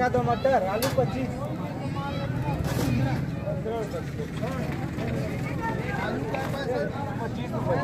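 Several men and women talk and call out nearby in a busy outdoor crowd.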